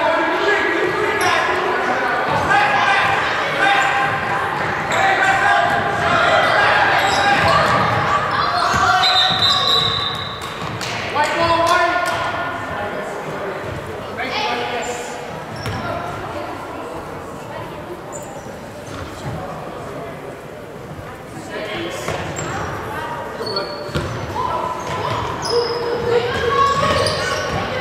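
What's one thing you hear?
A crowd of spectators chatters and cheers loudly in a large echoing gym.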